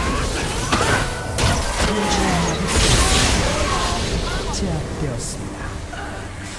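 Magic spells whoosh and crackle in a fast video game battle.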